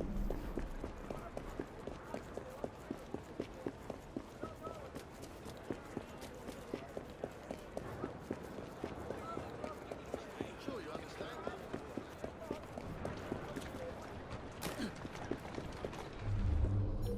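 Running footsteps slap quickly on cobblestones.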